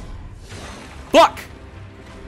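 A sword swishes through the air with a sharp slash.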